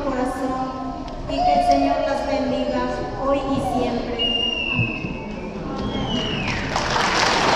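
Organ music plays, echoing through a large hall.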